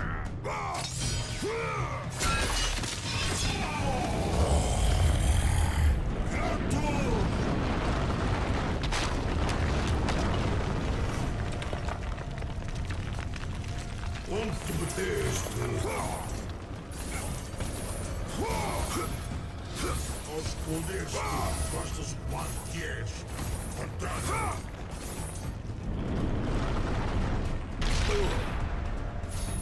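Loud rumbling booms rise and fall.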